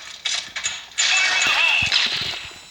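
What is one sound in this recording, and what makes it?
A stun grenade bursts with a sharp bang.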